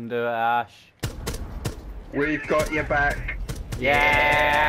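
Gunfire cracks in sharp bursts.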